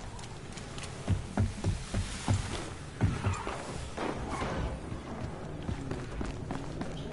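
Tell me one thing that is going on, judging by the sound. Gunshots crack in short bursts.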